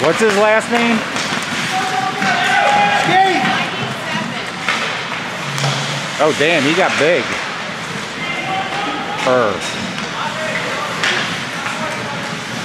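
Spectators and players shout out across an echoing rink.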